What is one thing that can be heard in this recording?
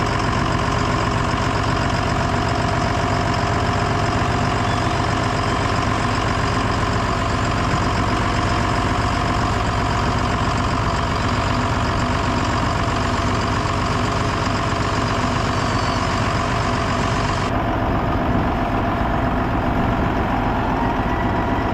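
A tractor engine runs as the tractor drives along.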